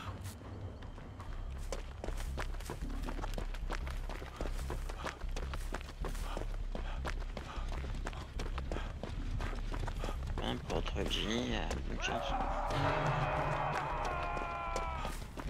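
Quick footsteps run through grass.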